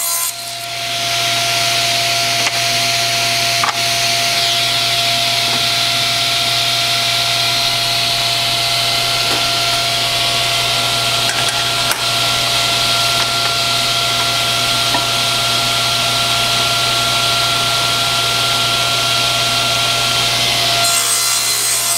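A table saw motor runs with a loud, steady whine.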